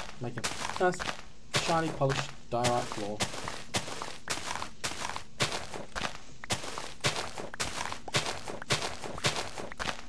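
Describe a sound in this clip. A shovel digs into soft dirt with repeated crunching scrapes.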